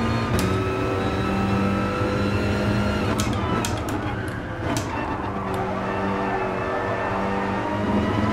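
A racing car engine roars steadily at high revs, dropping in pitch with each gear change.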